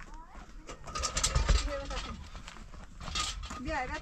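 A wheelbarrow rattles as it is pushed over rough ground.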